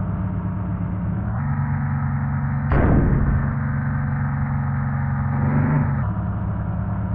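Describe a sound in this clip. A bus's diesel engine hums as it drives slowly.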